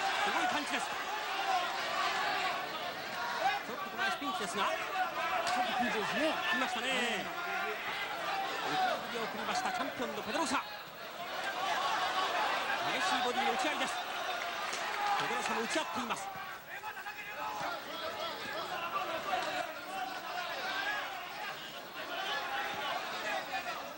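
Punches thud against bodies.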